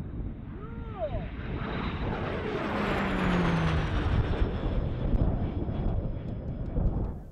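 A jet plane roars overhead, swelling and then slowly fading.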